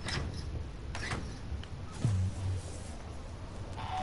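A heavy door slides open with a mechanical whoosh.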